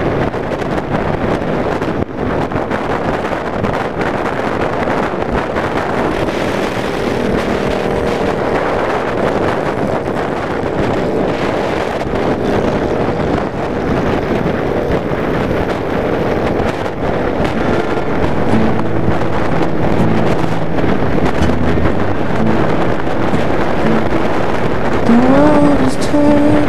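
Wind roars past the rider.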